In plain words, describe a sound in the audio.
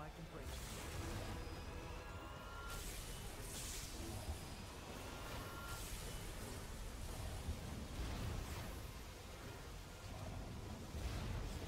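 Energy beams blast and crackle loudly.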